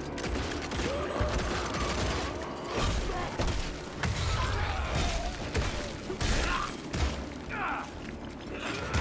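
Creatures screech and growl.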